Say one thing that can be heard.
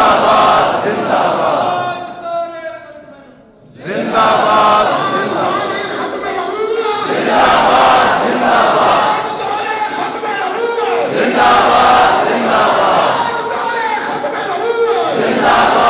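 A crowd of men chants and shouts together in response.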